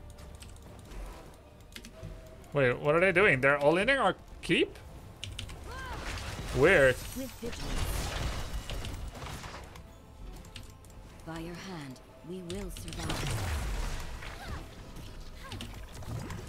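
Video game spell effects whoosh and crackle.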